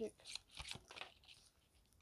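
Paper cards slide and tap on a wooden table.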